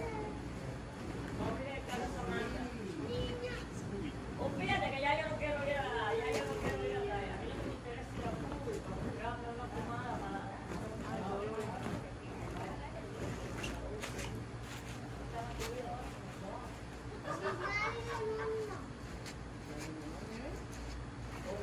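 A man and a woman talk casually nearby, outdoors.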